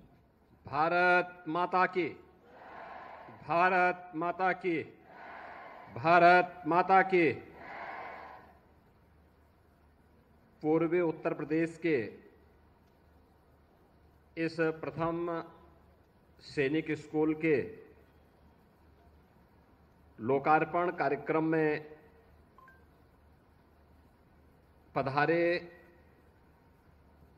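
A middle-aged man gives a speech in measured phrases with long pauses, heard through a microphone and loudspeakers.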